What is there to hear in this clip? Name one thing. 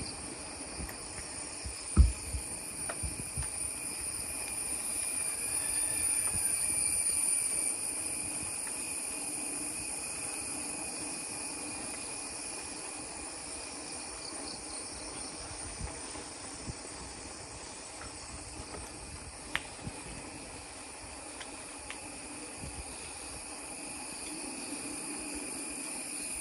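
Insects buzz and chirp steadily outdoors among trees.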